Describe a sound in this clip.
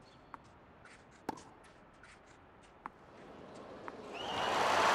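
A tennis ball is struck sharply with a racket several times.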